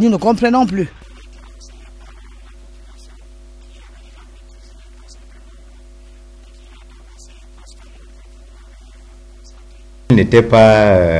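A middle-aged man speaks quietly close to a microphone.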